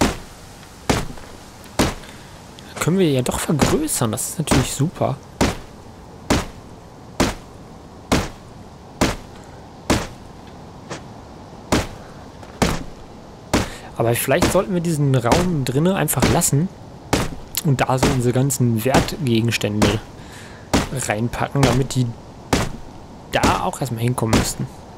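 An axe chops into a tree trunk with steady, repeated thuds.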